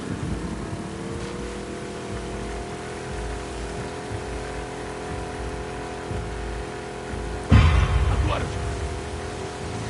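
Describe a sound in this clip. A small outboard motor starts and hums steadily.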